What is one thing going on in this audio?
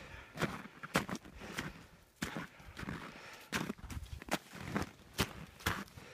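Boots crunch and scrape through snow in quick steps.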